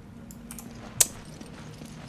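A single rifle shot cracks loudly.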